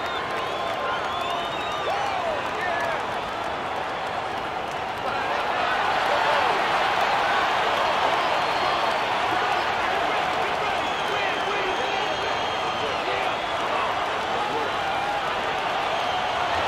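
A large crowd cheers steadily in an echoing arena, growing louder partway through.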